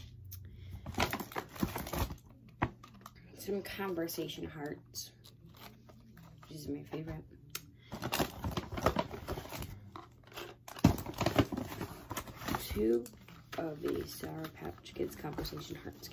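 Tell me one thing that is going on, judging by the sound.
Candy packets crinkle and rustle in a girl's hands.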